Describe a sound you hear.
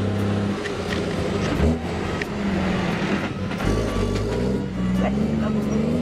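A truck engine rumbles as the truck drives along a road.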